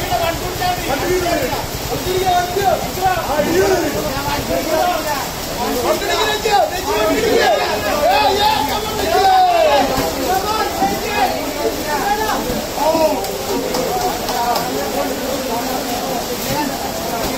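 Several men call out and talk from ringside.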